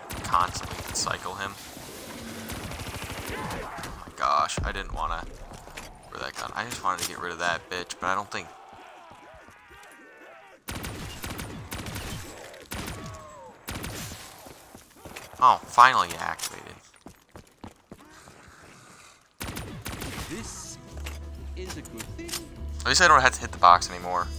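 Gunfire bursts in quick rattling volleys.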